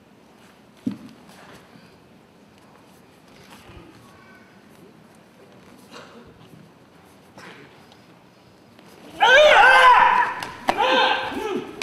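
Bare feet thud and shuffle on a mat.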